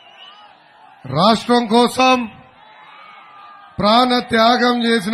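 A young man speaks loudly and with animation through a microphone and loudspeakers.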